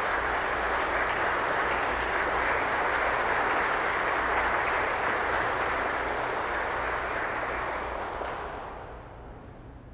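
A pipe organ plays loud, full chords that ring through a large echoing hall and die away at the end.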